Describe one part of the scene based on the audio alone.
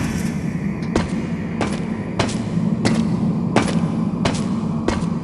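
Heavy metal-booted footsteps clank in a steady rhythm.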